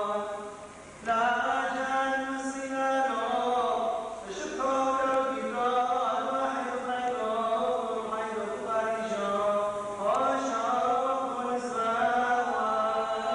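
A man sings a slow, sustained chant in a reverberant hall.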